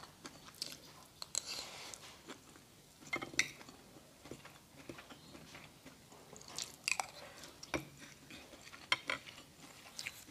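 A spoon scrapes and clinks on a plate.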